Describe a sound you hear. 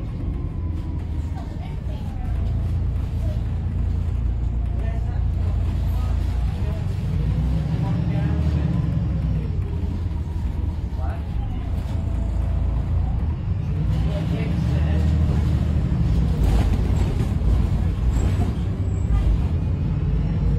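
A bus engine rumbles and whines steadily as the bus drives along.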